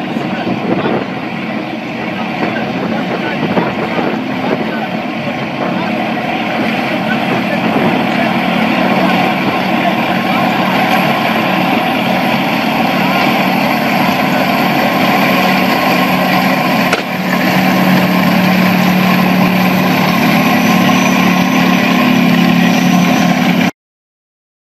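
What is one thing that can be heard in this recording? Tank engines roar and tracks clatter as armoured vehicles drive past close by.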